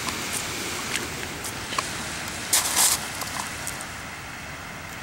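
Small waves wash gently onto a pebbly shore.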